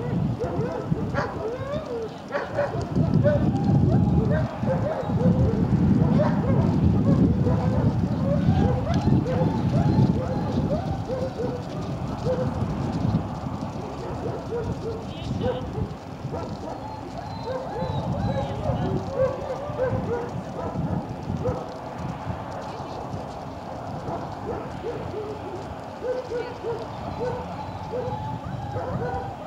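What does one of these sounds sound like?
Wind gusts outdoors, rumbling against the microphone.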